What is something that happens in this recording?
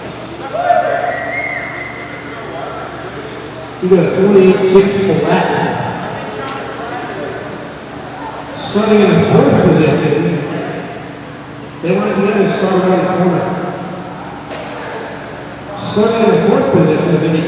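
Men talk with each other in a large echoing hall.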